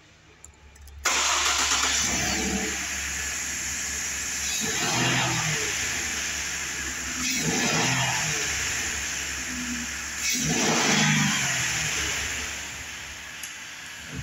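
A truck engine runs loudly, revving up in repeated bursts.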